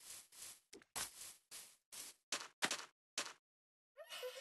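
Footsteps crunch on sand at a steady walking pace.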